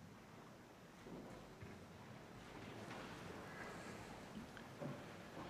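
A middle-aged man speaks slowly and solemnly through a microphone in a large echoing hall.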